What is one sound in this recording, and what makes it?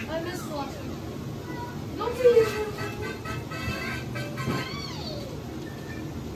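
A cheerful video game victory tune plays from television speakers.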